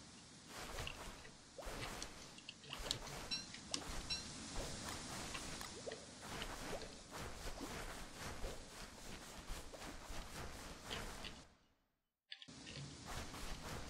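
Footsteps crunch on sand as a character walks.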